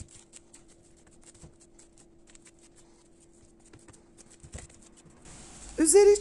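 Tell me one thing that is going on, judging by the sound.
Fingers press and pat a crisp baked pastry sheet with soft, scattered crackles.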